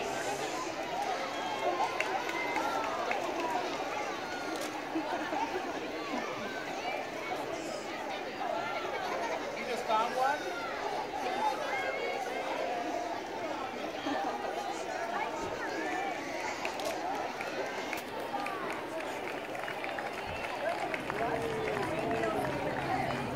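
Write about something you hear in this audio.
A crowd of onlookers chatters steadily outdoors.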